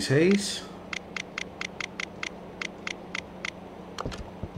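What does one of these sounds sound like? A safe's combination dial clicks as it turns.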